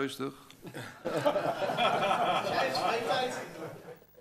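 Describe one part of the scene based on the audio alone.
Several people laugh together.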